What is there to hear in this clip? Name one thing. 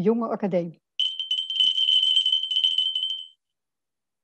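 A small bell rings with a steady high tone.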